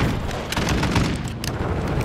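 A rifle magazine clicks into place during a reload.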